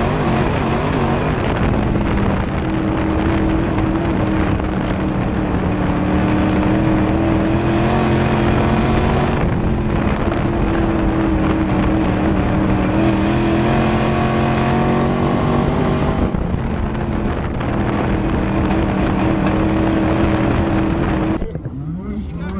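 A race car engine roars loudly at high revs from inside the cockpit.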